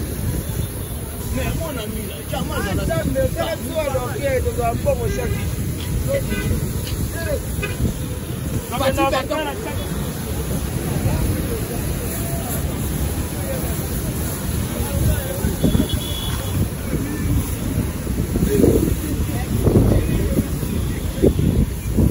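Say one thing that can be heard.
A hose sprays water onto a car.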